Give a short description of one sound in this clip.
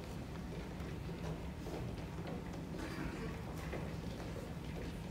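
Footsteps shuffle across a wooden stage in a large echoing hall.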